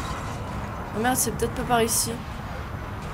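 A young woman speaks briefly and with animation into a headset microphone.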